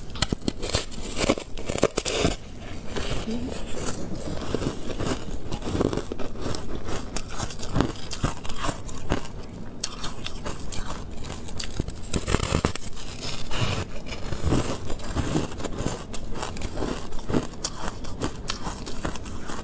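A young woman chews crunchy candy close to the microphone.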